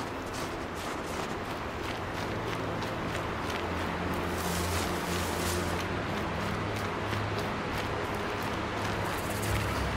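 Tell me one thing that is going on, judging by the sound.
Footsteps crunch quickly through snow and grass.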